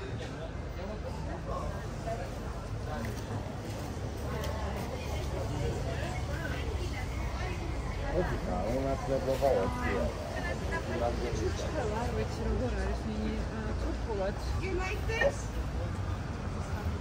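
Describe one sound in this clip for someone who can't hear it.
Voices of men and women chatter nearby on a busy street.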